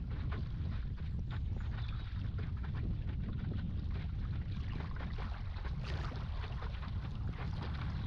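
Wind buffets a microphone with a steady low rumble.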